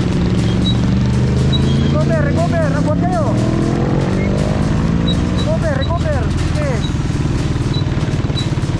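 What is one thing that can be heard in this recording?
Motorcycle engines hum steadily nearby.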